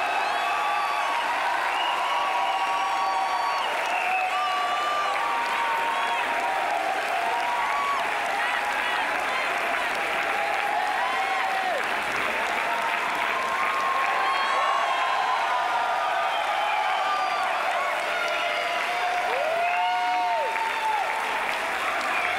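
Young men whoop and shout with excitement.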